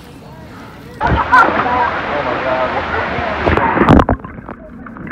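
Water splashes and sloshes close by.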